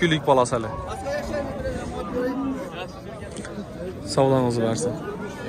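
Several men talk nearby, outdoors among a crowd.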